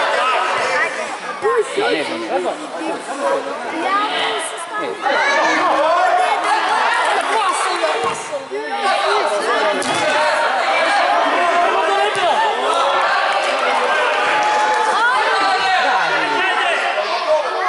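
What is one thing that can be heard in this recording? Children shout and call out loudly in a large echoing hall.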